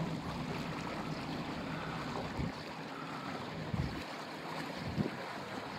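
A boat's engine rumbles low and steady.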